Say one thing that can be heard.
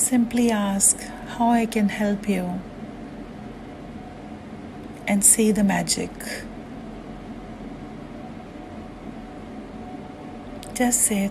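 A woman speaks calmly and close to a microphone, in short phrases with pauses.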